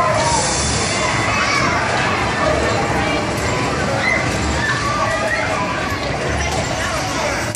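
Arcade machines beep and play electronic jingles.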